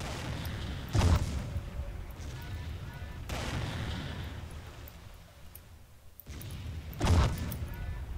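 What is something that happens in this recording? Laser weapons fire in sharp bursts.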